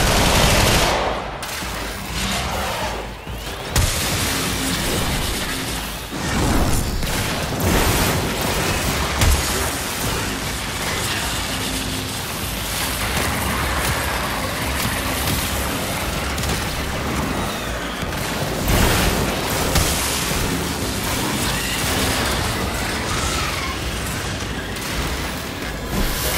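Weapons fire rapidly with bursts of blasts and explosions.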